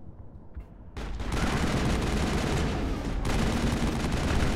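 A loud energy blast roars and crackles.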